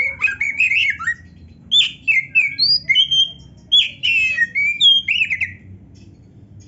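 A songbird sings loud, quick whistling phrases close by.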